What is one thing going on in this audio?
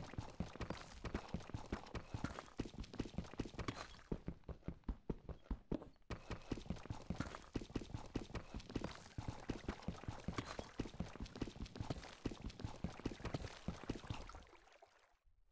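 A pickaxe chips at stone in quick, steady blows.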